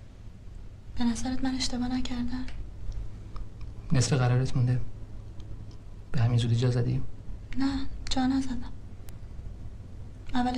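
A young woman speaks quietly and calmly nearby.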